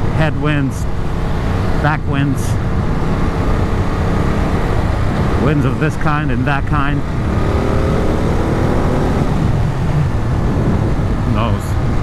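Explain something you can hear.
Wind roars steadily past a moving rider.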